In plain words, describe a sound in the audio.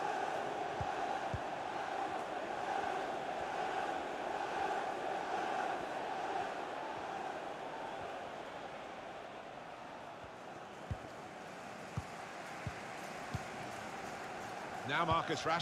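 A large stadium crowd murmurs and chants steadily.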